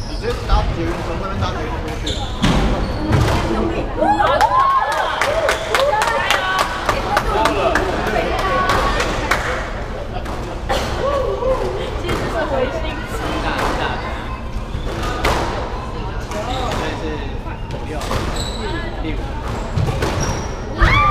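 A squash ball smacks sharply against walls and rackets, echoing in a hard room.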